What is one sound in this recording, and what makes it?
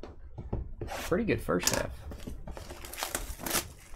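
Plastic wrapping crinkles as a pack is torn open.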